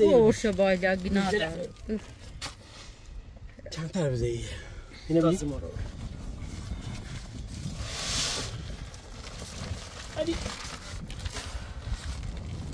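A heavy sack thumps and rustles as it is set down in a car boot.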